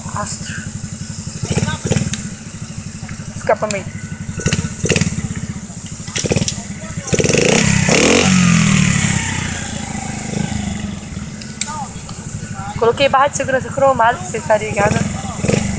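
A motorcycle engine idles with a steady low putter.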